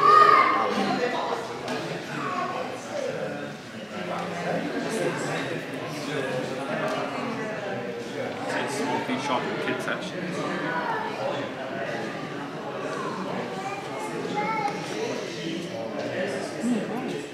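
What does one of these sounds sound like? A crowd of adults chatters nearby in a busy indoor room.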